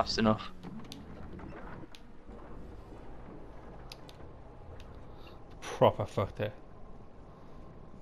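Water bubbles and gurgles underwater.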